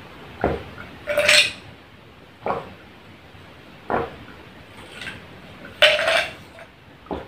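Ice clinks against glass.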